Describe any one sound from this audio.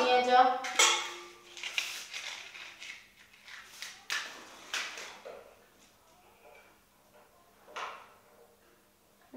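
Metal cookware clinks and clatters on a stove.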